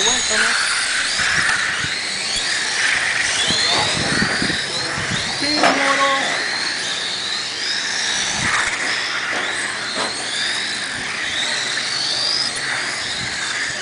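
Small electric model cars whine at high pitch as they race and speed up and slow down outdoors.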